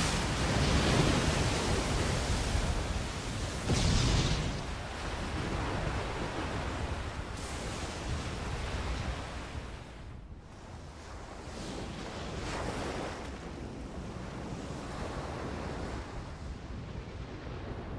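Rough sea waves roll and surge.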